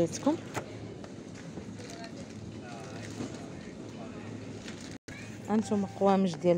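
Cardboard packaging rustles and scrapes as a hand handles it.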